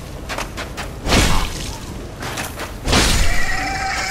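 A sword slashes and strikes flesh with heavy thuds.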